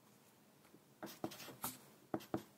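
A pencil scratches and taps on paper.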